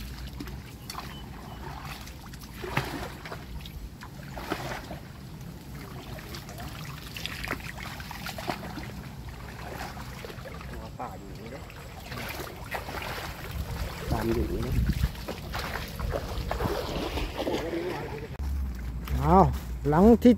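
Feet slosh and squelch through shallow muddy water.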